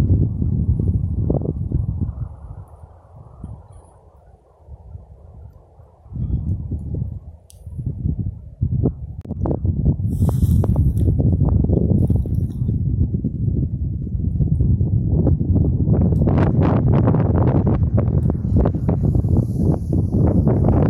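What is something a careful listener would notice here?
Strong wind rumbles and buffets in gusts outdoors.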